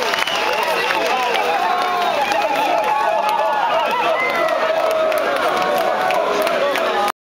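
A large crowd of young men and women shout and cheer loudly outdoors.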